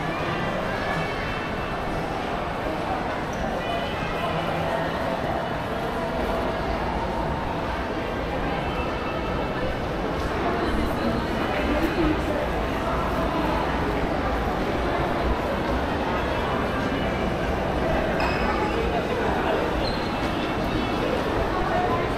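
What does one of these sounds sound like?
Shoppers' voices murmur in a large echoing hall.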